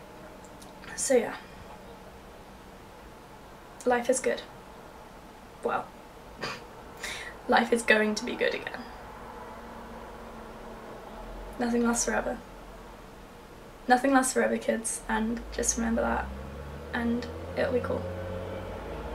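A young woman talks casually close to the microphone, in short bursts with pauses.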